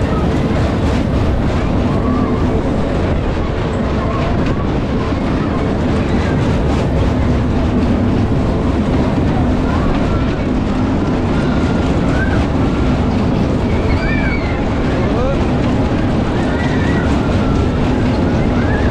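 Wind rushes loudly past as a fairground ride spins.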